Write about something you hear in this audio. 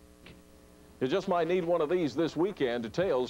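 A second man speaks with animation, heard through an old television broadcast.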